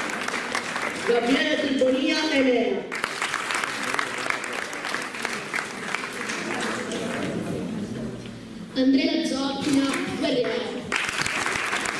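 A young boy speaks briefly through a microphone and loudspeakers.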